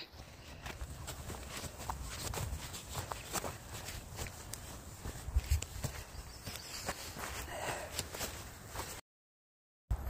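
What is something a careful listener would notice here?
Footsteps crunch on dry wood chips and twigs.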